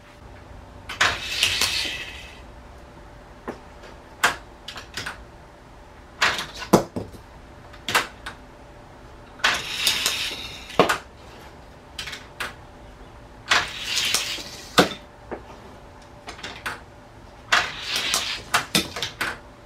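A plastic toy launcher clicks and snaps sharply several times.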